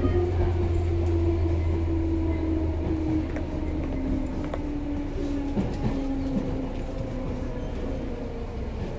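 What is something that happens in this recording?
An electric train hums and rumbles along the tracks close by.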